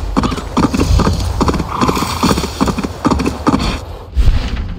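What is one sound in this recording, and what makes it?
An elk's hooves thud steadily on snowy ground.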